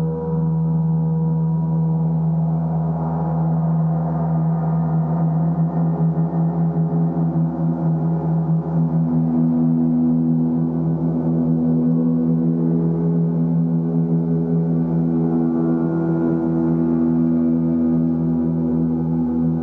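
Large gongs hum and shimmer in deep, swelling waves.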